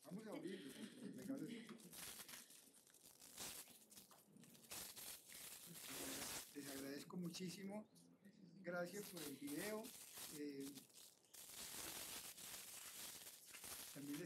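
Paper rustles and crinkles as a package is unwrapped.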